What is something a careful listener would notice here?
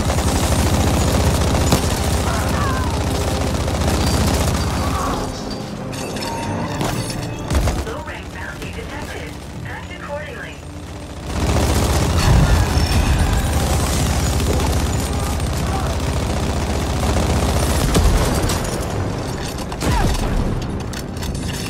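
Gunfire and explosions crackle and boom in a loud battle.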